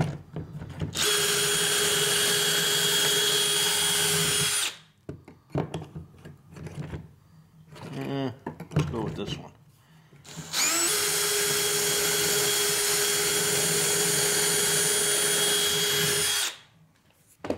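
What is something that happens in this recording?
A power drill whirs steadily at high speed as it bores into wood.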